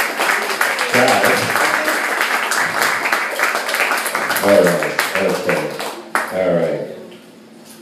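A man speaks with animation through a microphone over a loudspeaker.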